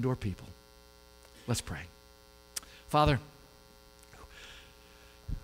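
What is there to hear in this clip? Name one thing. A man speaks in short bursts through a microphone and loudspeakers in a large room.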